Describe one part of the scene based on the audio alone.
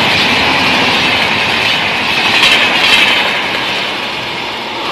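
A train rushes past at speed, wheels clattering on the rails.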